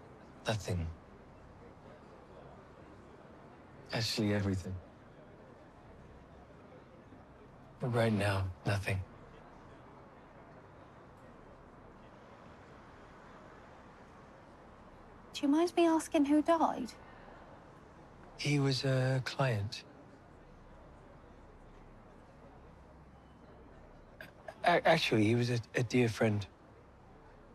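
A man speaks quietly in short phrases, close by.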